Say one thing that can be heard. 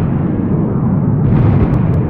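An explosion roars with rushing flames.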